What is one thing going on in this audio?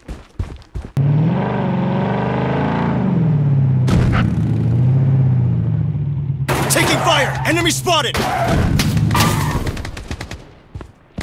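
An off-road truck engine revs as it drives.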